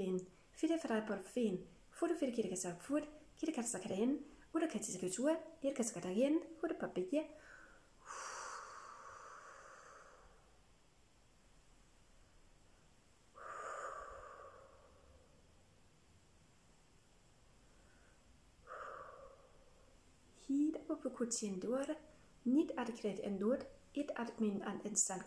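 A middle-aged woman speaks calmly and closely, as if to a microphone.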